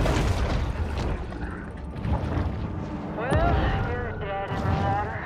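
Muffled underwater rumbling fills the background.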